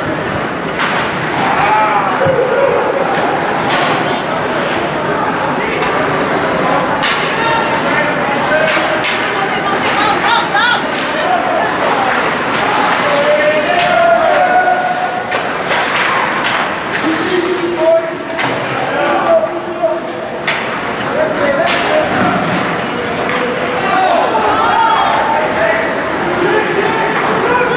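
Spectators chatter nearby in an echoing arena.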